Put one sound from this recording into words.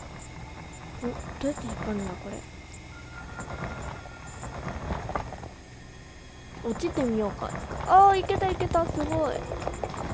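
Small spiders chitter and squeak in quick rising and falling chirps.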